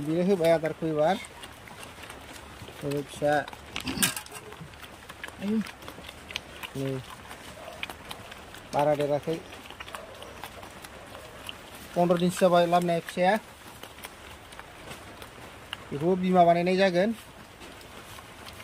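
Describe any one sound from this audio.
A pig slurps and chews food noisily.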